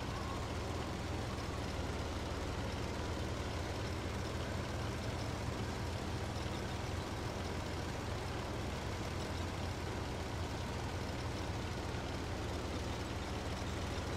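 Tank tracks clatter and squeak over the ground.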